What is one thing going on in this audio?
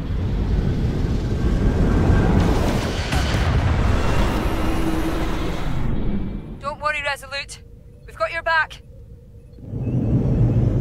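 A deep engine rumble roars.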